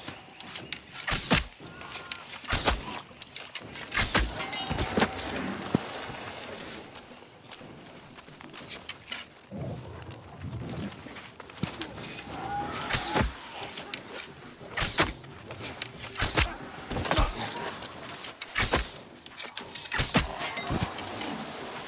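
A bow twangs as arrows are loosed again and again.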